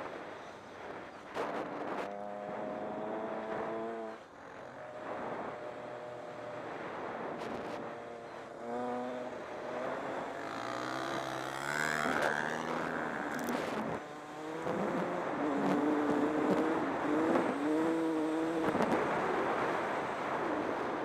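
A dirt bike engine revs up and down as it rides fast.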